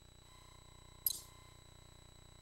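A short electronic menu beep sounds.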